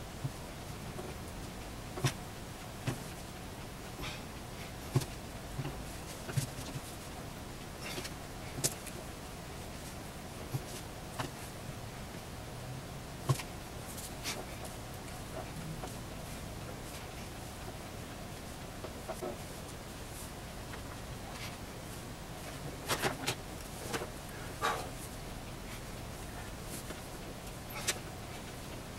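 Hands press and pat soft clay with soft, irregular taps and thumps.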